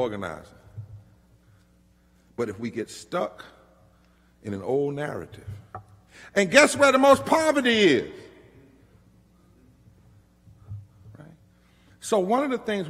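A man speaks with emphasis through a microphone, with pauses, in a large echoing hall.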